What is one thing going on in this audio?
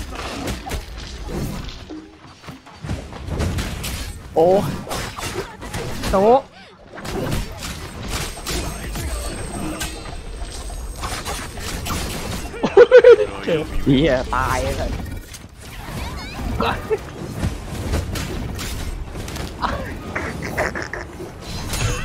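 Swords clash and strike in quick, sharp blows.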